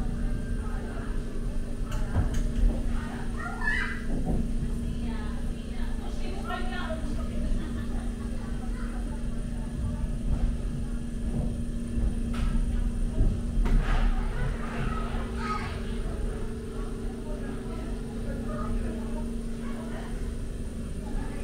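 A ride car rolls along a track with a steady low rumble.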